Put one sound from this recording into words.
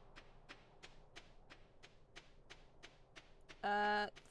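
Footsteps crunch in quick, steady steps on snow.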